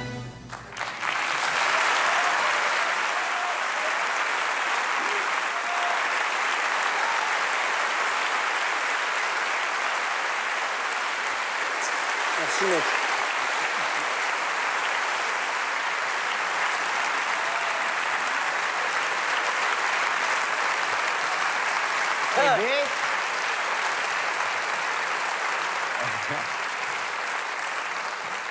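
A large audience applauds loudly in an echoing theatre.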